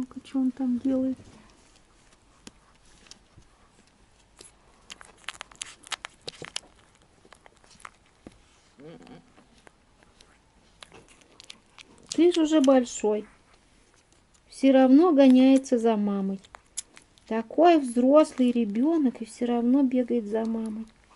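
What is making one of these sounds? A puppy suckles with soft, wet smacking sounds.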